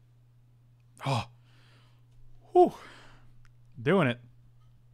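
A middle-aged man speaks in short bursts into a close microphone.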